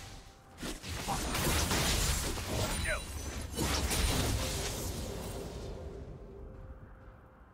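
Loud game spell blasts and hits crash and crackle, then die away.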